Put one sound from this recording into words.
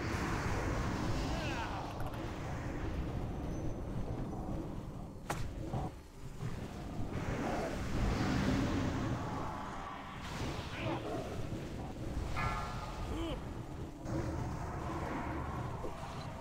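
Magic spells crackle and boom in a noisy battle.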